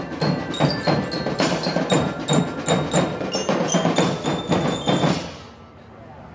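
Glockenspiels ring out a lively tune, loud and close.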